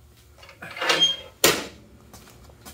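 A metal stove door clanks shut.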